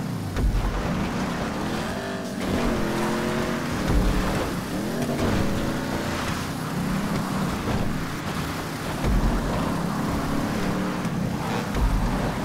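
Tyres crunch and skid over loose gravel.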